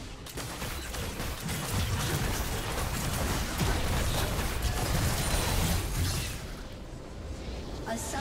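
Game spell effects and attacks clash and crackle in a busy fight.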